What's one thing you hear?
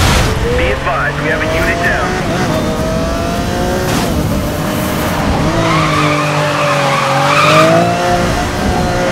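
A sports car engine roars at high revs, its pitch rising and falling.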